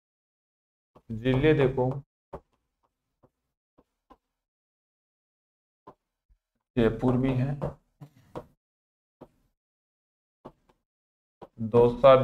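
A young man speaks calmly in short bursts, close by.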